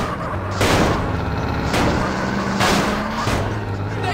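A car crashes into another car with a loud bang.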